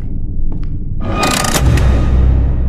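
A metal lever clanks loudly.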